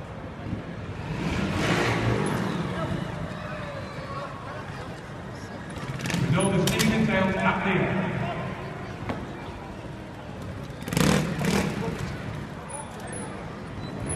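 A motorcycle engine revs in sharp bursts.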